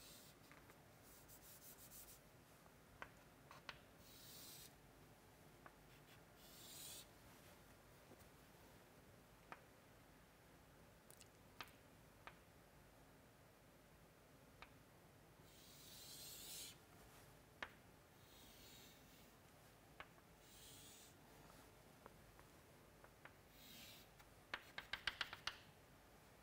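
Chalk scrapes and squeaks across a blackboard in short strokes.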